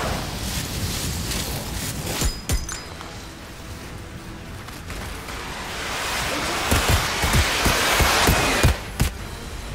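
Boots thud on muddy ground.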